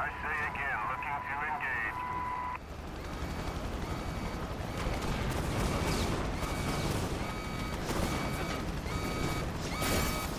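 A helicopter's rotor chops overhead.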